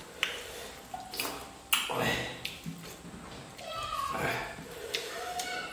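A man and a woman chew and smack their lips close by.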